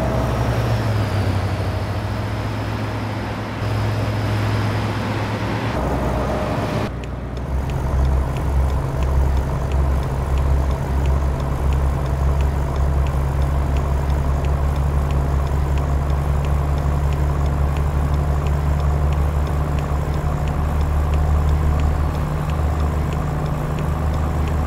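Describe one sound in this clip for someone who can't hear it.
A truck engine rumbles steadily and deeply.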